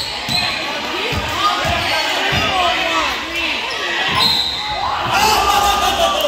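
A crowd of spectators talks and cheers loudly.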